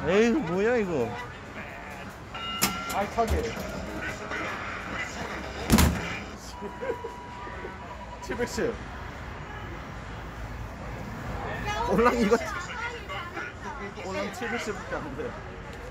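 An arcade boxing machine plays bright electronic sound effects.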